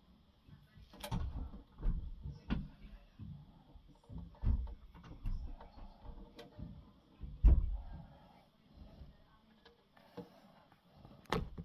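Small plastic pieces click and tap on a hard surface close by.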